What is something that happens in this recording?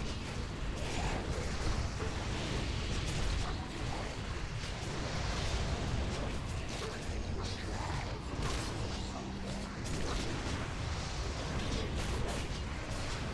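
Weapons clash in a busy fight.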